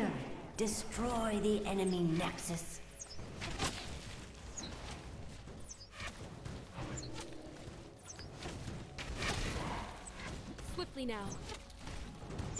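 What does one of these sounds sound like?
Magic spells burst and crackle in a hectic battle.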